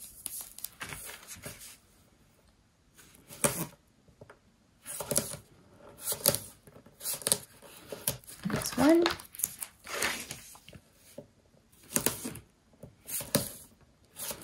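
Paper rustles and crinkles as it is folded and handled.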